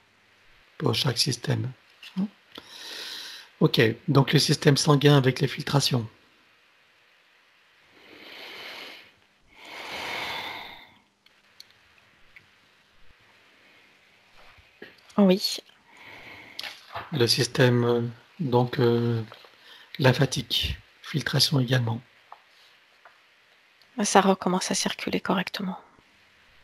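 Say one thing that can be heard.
A middle-aged man speaks calmly into a headset microphone, heard over an online call.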